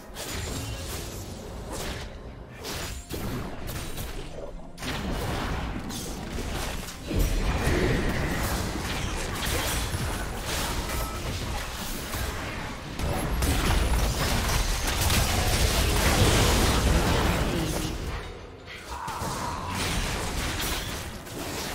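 Game spell effects and combat blasts crackle and boom.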